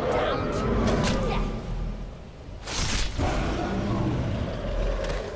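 A huge beast roars and growls.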